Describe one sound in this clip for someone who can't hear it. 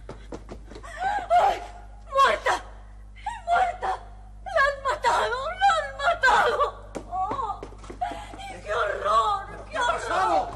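A young woman speaks in distress, crying out.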